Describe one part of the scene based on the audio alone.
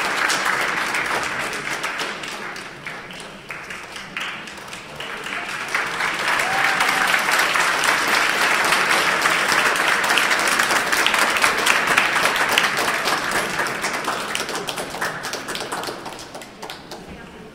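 An orchestra plays loudly in a large echoing hall.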